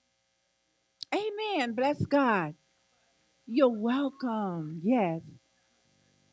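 A woman sings loudly and with feeling into a microphone.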